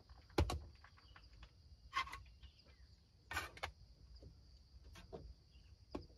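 A small object is set down on a hard tabletop with a light knock.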